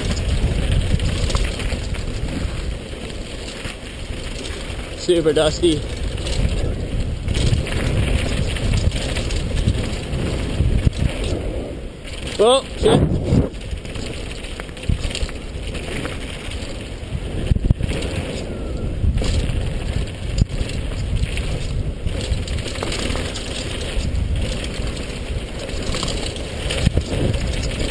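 Mountain bike tyres roll fast downhill over a dirt trail.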